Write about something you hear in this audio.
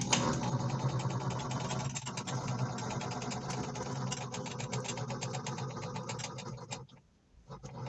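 A lathe motor hums steadily, then stops.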